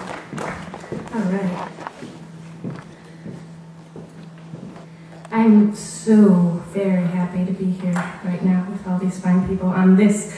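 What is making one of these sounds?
A young woman speaks into a microphone over loudspeakers.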